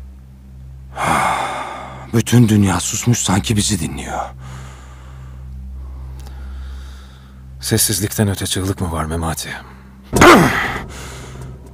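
A man speaks tensely and close by.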